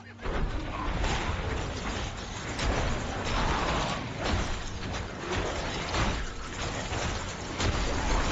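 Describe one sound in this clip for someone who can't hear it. Game combat effects crash and boom in rapid bursts.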